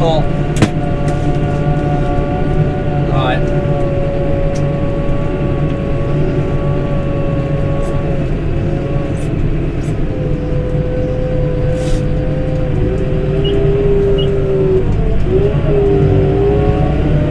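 A tractor engine drones steadily from inside the cab, its pitch shifting now and then.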